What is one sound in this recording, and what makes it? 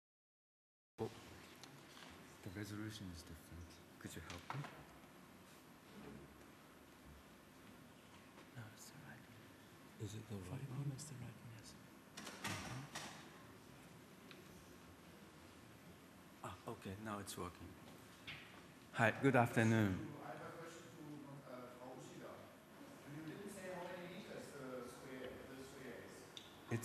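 A young man speaks calmly into a microphone in a large hall.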